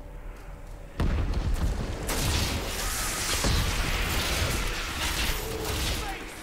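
Game combat sounds crash and clatter as monsters attack.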